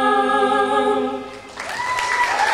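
A young boy sings into a microphone, heard through loudspeakers.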